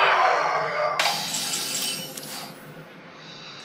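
A bright chime rings out and fades.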